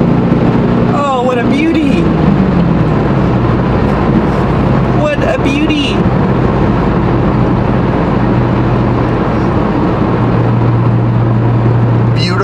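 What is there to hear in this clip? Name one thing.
A car drives along a highway with a steady rumble of tyres and engine from inside the cabin.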